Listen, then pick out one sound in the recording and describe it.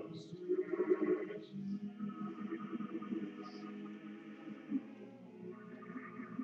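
Men chant in a slow, steady drone, echoing in a large hall.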